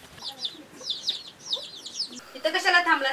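Chicks chirp in high, quick peeps.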